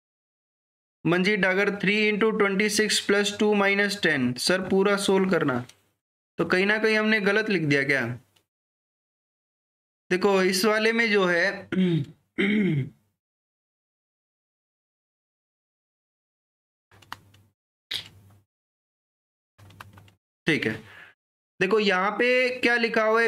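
A man explains calmly through a close microphone.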